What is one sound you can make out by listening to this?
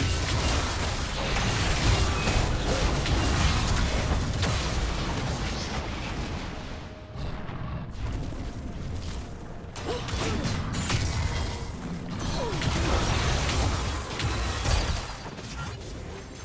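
Video game spell effects whoosh, crackle and clash in a busy battle.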